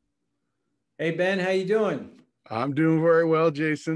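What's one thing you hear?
A man talks cheerfully over an online call.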